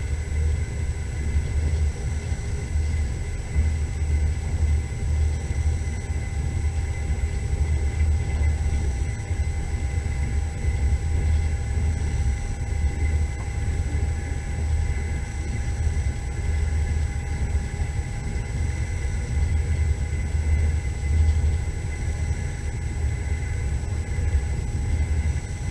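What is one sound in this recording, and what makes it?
A vehicle's engine rumbles steadily from inside the cabin as it drives along.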